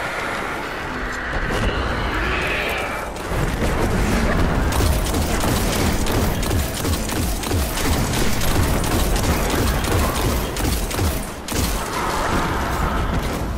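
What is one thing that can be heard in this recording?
Energy shots crackle and whoosh past.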